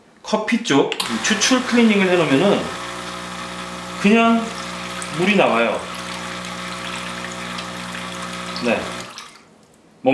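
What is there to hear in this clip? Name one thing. An espresso machine's pump hums and buzzes steadily.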